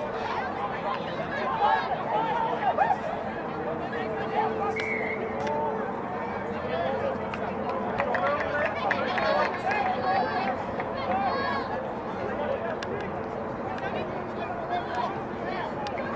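Young women shout to each other across an open field.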